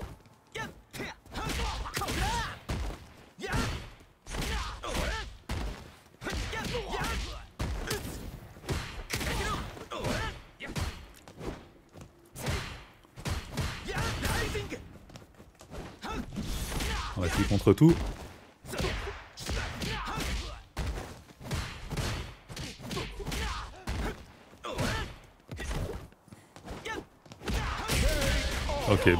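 Punches and kicks thud and smack in quick bursts.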